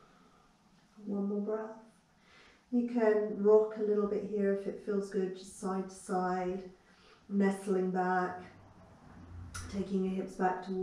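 A woman speaks calmly and softly close by.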